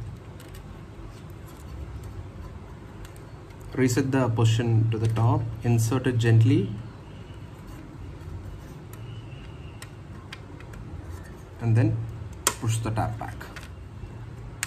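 Small plastic and metal parts click and scrape as they are handled up close.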